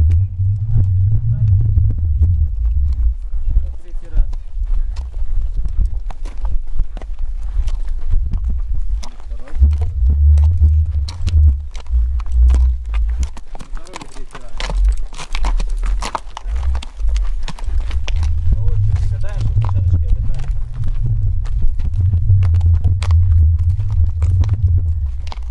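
A horse's hooves clop and scrape on stony ground.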